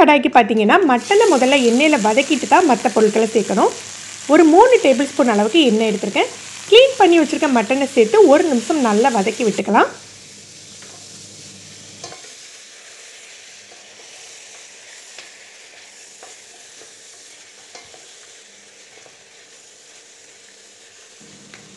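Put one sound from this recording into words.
Meat sizzles in hot oil in a pan.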